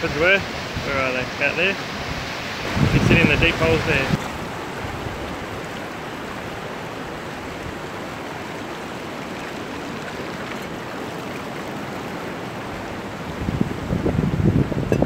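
Water rushes over rocks steadily.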